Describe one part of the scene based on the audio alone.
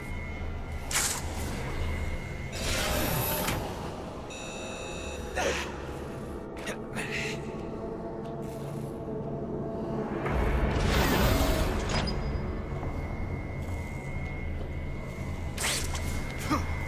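A web shoots out with a sharp whoosh.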